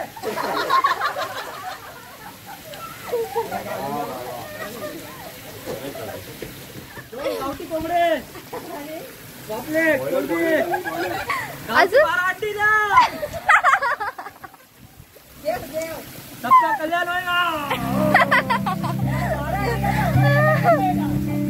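Young men and women shout and cheer with excitement outdoors.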